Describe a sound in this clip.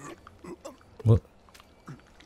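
A lever clicks as it is pulled.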